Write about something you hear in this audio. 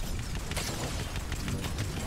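A cannon blasts with a whooshing energy shot.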